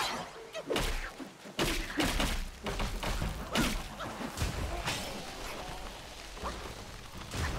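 A man talks with animation into a headset microphone.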